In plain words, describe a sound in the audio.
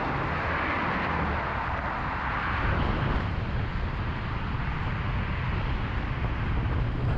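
Tyres hiss on the road surface as cars pass close by.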